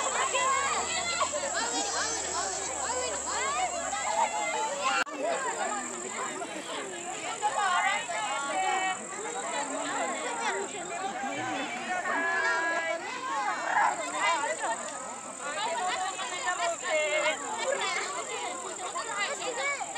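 A crowd of men, women and children chatters and calls out excitedly outdoors.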